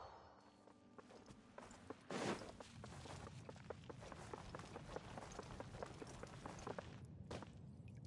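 Quick footsteps run over hard stone.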